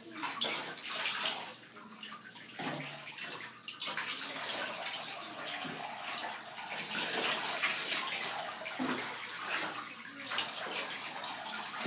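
Water pours from a cup and splashes into a bathtub.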